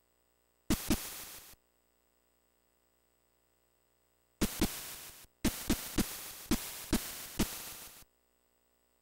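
Crunchy electronic game footstep sounds play in quick bursts.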